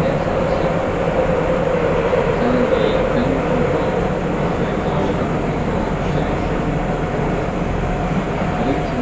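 An electric train hums steadily while standing still.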